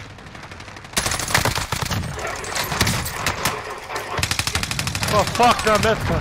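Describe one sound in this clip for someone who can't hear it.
Rapid bursts of gunfire crack and rattle close by.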